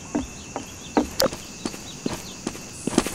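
Footsteps fall softly on grass.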